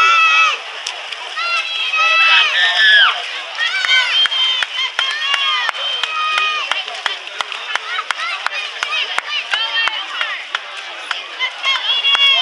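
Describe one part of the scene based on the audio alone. A crowd of children and adults cheers and shouts loudly outdoors.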